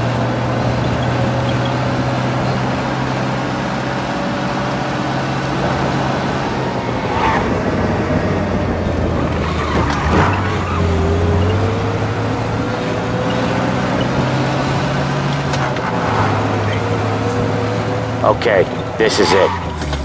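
An old car engine hums steadily as the car drives along.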